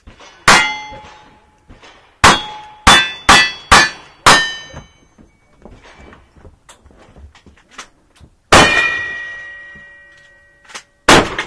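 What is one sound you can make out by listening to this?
Revolver shots crack outdoors, one after another.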